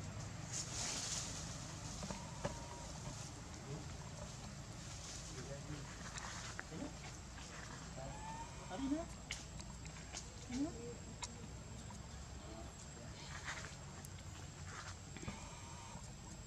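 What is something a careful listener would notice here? Leaves rustle as a monkey moves through branches.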